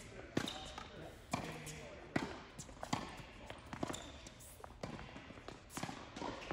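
Tennis balls are struck with rackets in sharp pops, echoing in a large hall.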